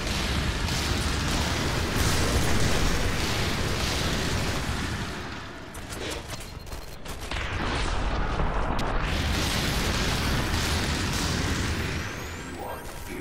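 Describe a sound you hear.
Loud blasts and roaring noise crash continuously.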